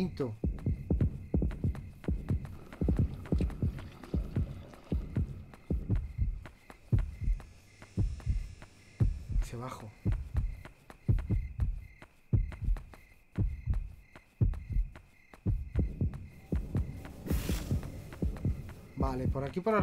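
Footsteps thud steadily on hard ground.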